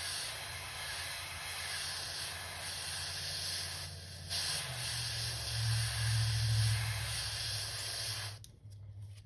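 Compressed air hisses steadily from an airbrush.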